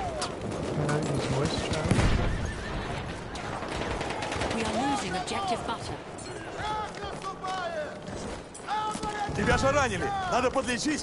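Rifle shots crack and echo.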